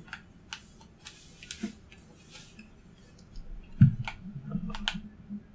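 Footsteps tap on a metal floor.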